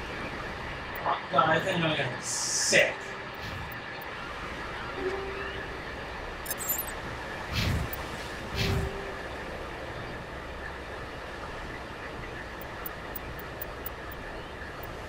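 Soft electronic menu blips and whooshes sound as selections change.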